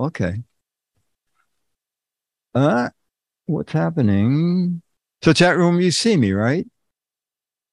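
An elderly man speaks slowly and thoughtfully into a close microphone, with long pauses.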